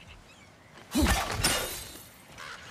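An axe swings and strikes with a loud crash.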